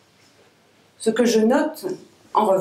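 A woman reads aloud into a microphone.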